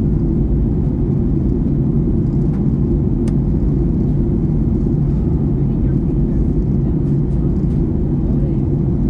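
A jet airliner's engines roar steadily in the cabin with a low, constant rumble.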